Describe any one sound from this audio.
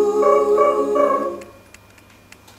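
A choir of women sings in harmony.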